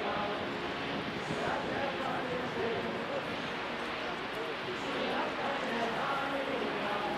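Water splashes in a boat's wake.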